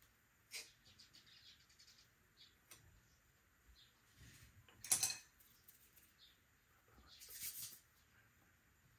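Clay pieces clatter and knock on a table.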